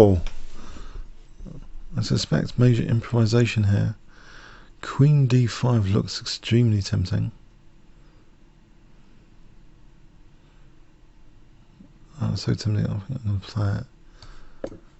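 A man talks calmly into a microphone, close by, in short bursts.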